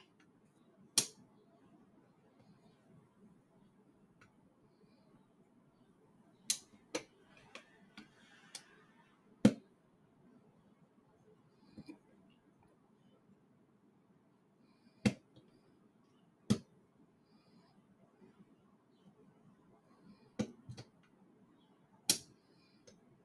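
Plastic parts click and clack as hands handle a mechanism.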